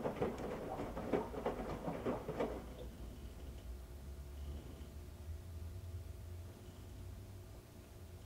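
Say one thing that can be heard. A washing machine motor hums low and steady.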